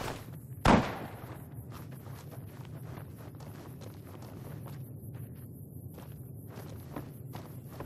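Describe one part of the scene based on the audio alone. Footsteps crunch on dirt and rock.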